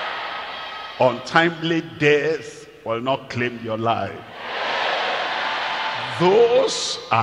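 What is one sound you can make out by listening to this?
An elderly man preaches with passion through a microphone and loudspeakers.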